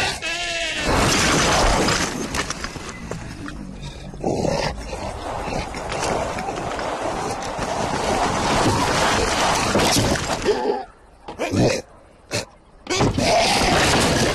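Boulders crash and tumble down around a log.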